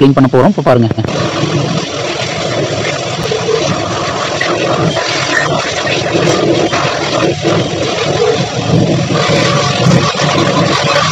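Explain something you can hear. A pressure washer sprays water hard against a wall with a steady hiss.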